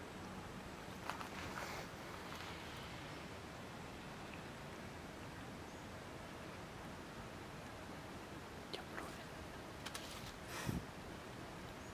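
Dry leaves rustle under a monkey's feet.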